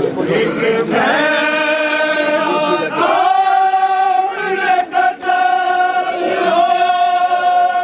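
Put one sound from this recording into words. A man sings a long, drawn-out lament in a strong voice.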